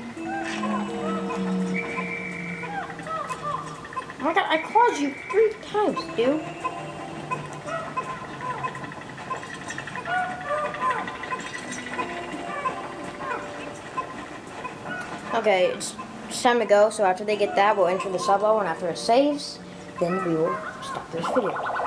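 Tiny creatures chirp and squeal in a busy chorus.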